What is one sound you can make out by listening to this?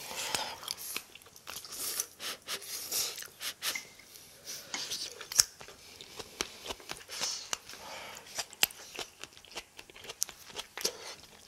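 Metal chopsticks click against each other.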